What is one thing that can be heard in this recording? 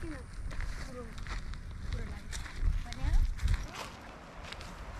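Footsteps crunch on dry leaves and grass.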